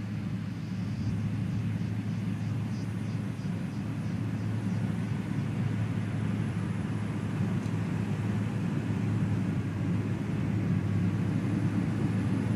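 A heavy diesel engine rumbles steadily nearby.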